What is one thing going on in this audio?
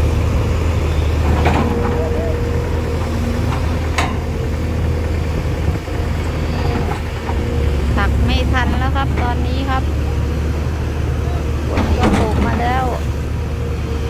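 A diesel excavator engine rumbles steadily nearby.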